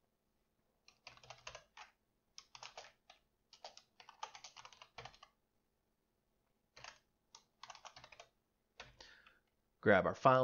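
Keys clatter on a keyboard in short bursts of typing.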